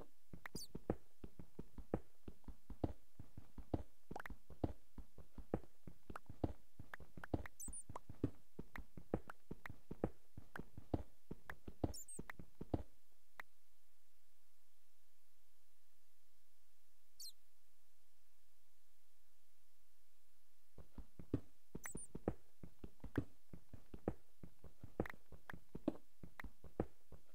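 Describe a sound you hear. A pickaxe chips at stone in quick, steady knocks.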